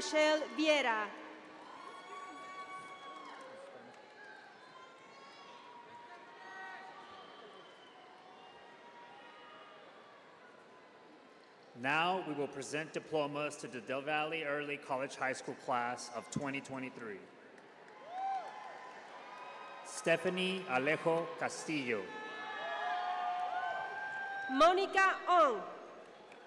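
Young women in a large crowd cheer and scream loudly in bursts.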